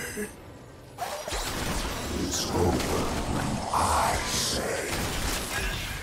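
Magic blasts and hits crackle and thump in a video game battle.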